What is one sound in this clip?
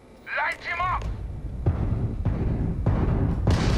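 A spaceship's engines rumble loudly.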